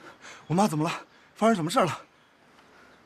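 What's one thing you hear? A young man asks something in a worried voice, close by.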